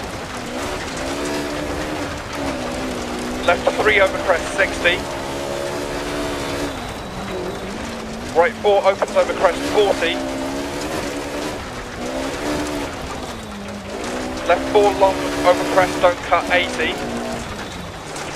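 A rally car engine roars, revving up and dropping as gears change.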